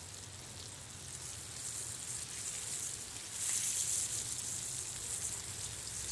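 A fork scrapes against a metal pan.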